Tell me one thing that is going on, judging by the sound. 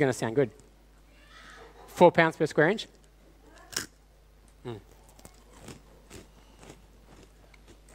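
A crisp crunches as a man bites and chews it.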